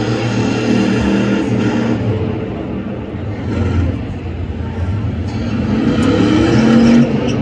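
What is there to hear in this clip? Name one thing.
A car engine roars loudly as it revs during a burnout.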